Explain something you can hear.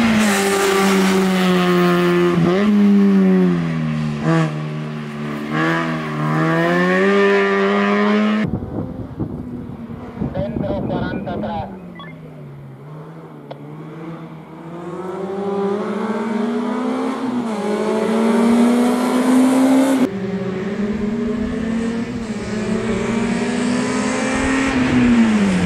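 A rally car engine revs hard and climbs in pitch through gear changes.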